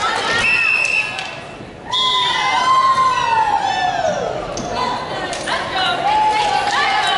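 Sneakers squeak sharply on a wooden floor in a large echoing hall.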